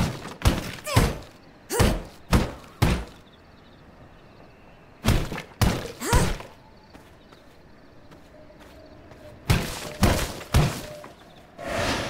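A game character strikes rocks and plants, with sharp chopping hits.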